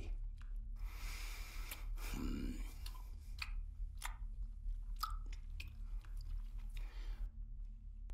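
A man slurps food noisily.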